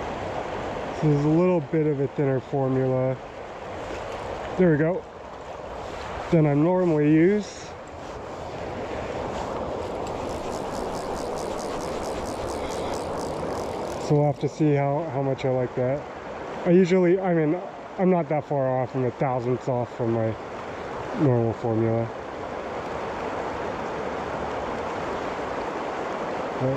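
A river flows and rushes steadily.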